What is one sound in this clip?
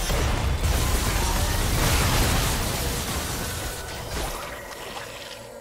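Spell effects whoosh and crackle in a fast game battle.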